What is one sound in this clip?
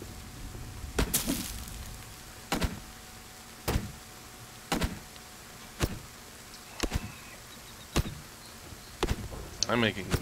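An axe chops into a tree trunk with sharp, regular knocks.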